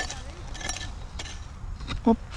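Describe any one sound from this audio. A hoe chops into dry soil.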